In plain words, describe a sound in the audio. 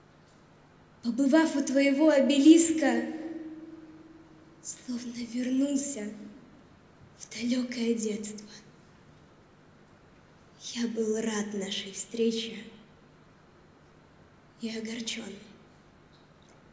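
Young women speak in short phrases, one after another, into microphones in a room with a light echo.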